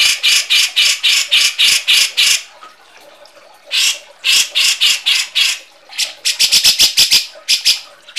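A bird calls in harsh, rapid, repeated bursts.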